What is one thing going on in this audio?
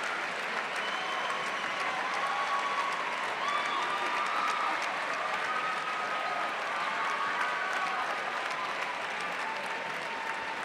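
A crowd applauds steadily in a large echoing hall.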